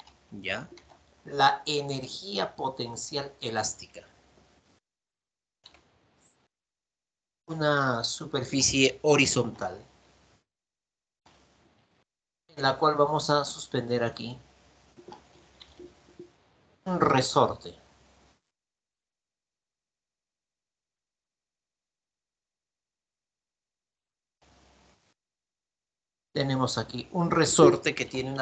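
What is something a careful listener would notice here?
A man speaks calmly and clearly, explaining into a microphone.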